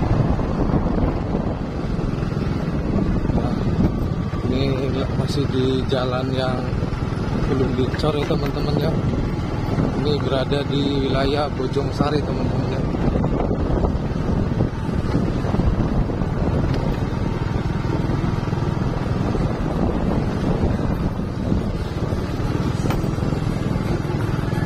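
A motorcycle engine runs as the bike cruises slowly.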